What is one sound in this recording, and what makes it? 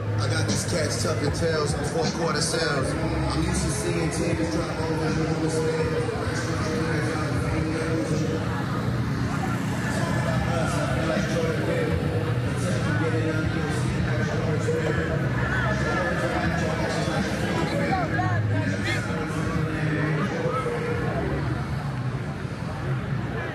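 A crowd of people chatters and calls out outdoors.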